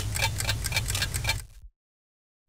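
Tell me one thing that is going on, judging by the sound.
Clocks tick quickly and evenly.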